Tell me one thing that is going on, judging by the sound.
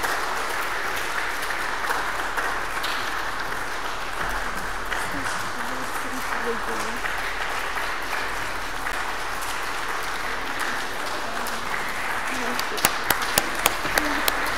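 A young woman speaks calmly through a microphone in a large echoing hall.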